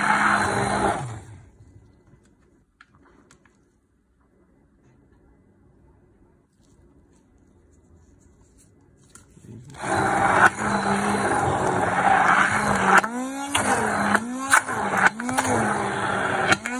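An electric hand blender whirs loudly, its motor pitch dipping and rising as it churns a thick mixture.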